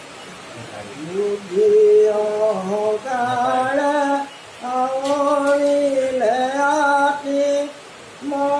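An elderly man chants in a slow, steady sung voice.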